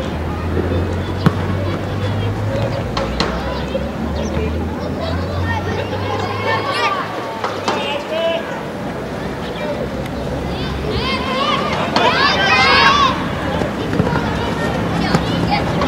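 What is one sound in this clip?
Children shout and call out in the distance outdoors.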